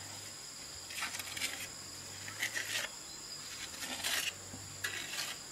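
A trowel scrapes wet mortar against a wall in short strokes.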